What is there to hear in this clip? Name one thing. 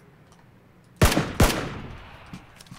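A rifle fires two loud shots close by.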